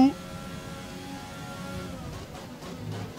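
A racing car engine hums at high revs.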